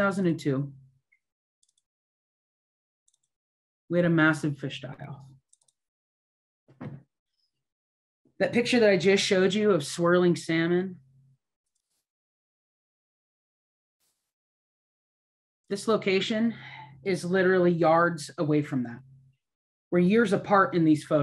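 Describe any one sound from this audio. A middle-aged woman speaks calmly into a computer microphone, in short phrases with pauses.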